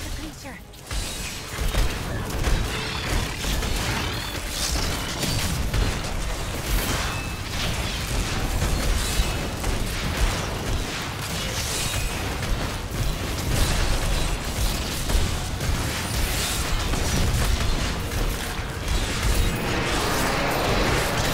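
Heavy impacts thud and boom over and over.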